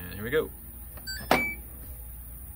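A washing machine button beeps when pressed.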